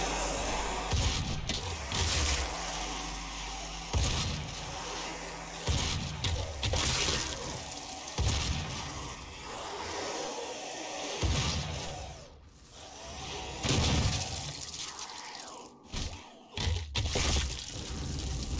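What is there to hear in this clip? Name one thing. Shotgun blasts boom one after another, loud and close.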